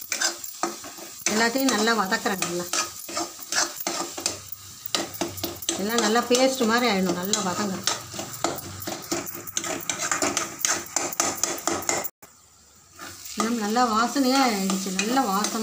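A metal spatula scrapes and stirs food in a pan.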